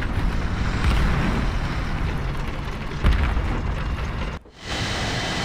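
A tank engine rumbles.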